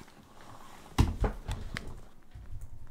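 A headset knocks and rustles against a microphone.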